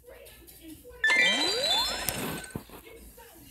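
A bright game chime jingles and sparkles.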